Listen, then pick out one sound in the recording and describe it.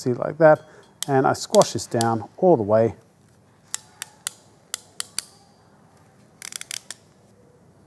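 A crimping tool clicks as it squeezes a wire terminal.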